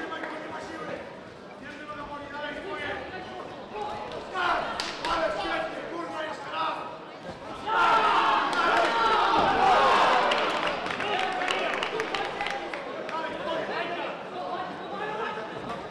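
A crowd of men and women shouts and cheers loudly in a large echoing hall.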